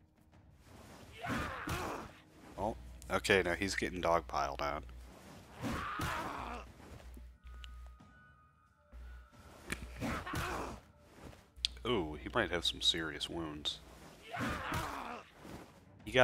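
Blades clash and slash in close combat.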